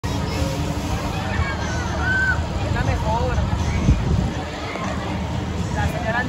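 Riders scream and shout in the distance.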